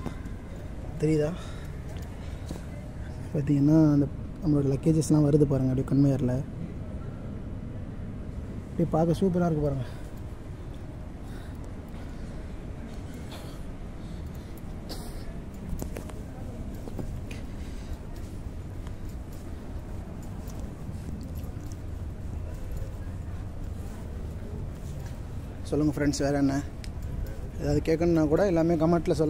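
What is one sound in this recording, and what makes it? A young man speaks close by, in short bursts.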